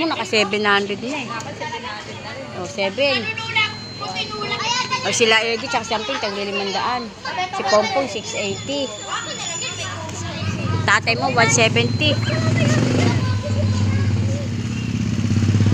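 Several men and women talk loudly and laugh nearby.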